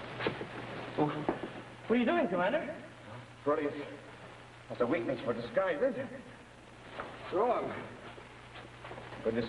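Men speak with animation.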